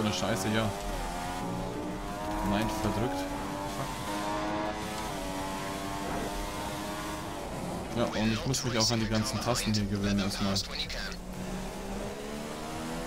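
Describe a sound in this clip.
A racing car engine whines at high revs, rising and falling as the gears change.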